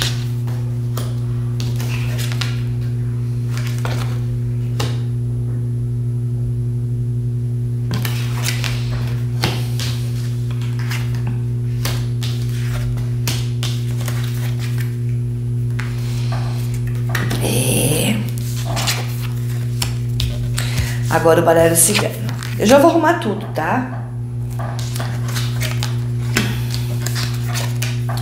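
Cards slide and tap on a table.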